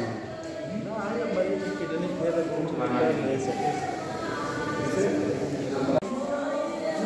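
A man speaks nearby in a group, talking with animation.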